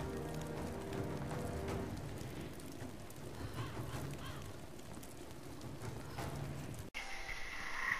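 A small fire crackles softly.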